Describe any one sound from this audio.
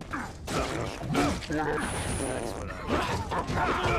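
A knife slashes and clangs.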